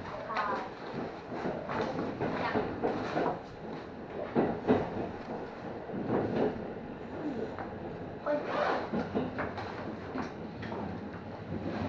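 A train rumbles along rails through a tunnel.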